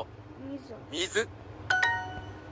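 A phone app plays a short bright chime.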